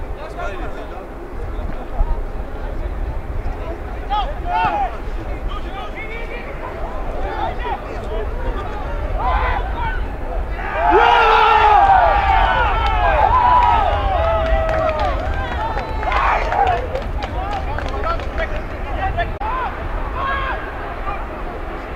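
Young men shout to each other outdoors.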